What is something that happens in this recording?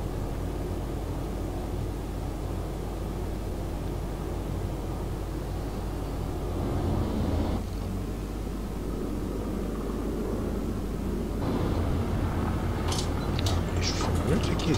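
Waves wash against a ship's hull.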